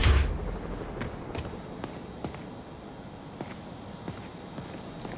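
Footsteps tap softly on a hard floor.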